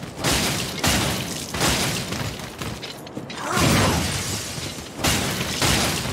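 A sword clangs against a hard hide.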